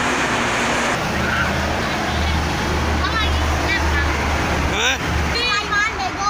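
A large truck rumbles by with a deep engine roar.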